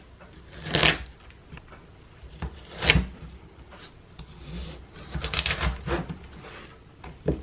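A knife chops through a raw carrot onto a cutting board.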